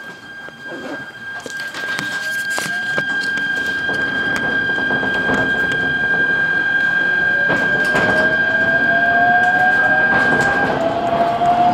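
A train's motor whines and rises in pitch as the train speeds up.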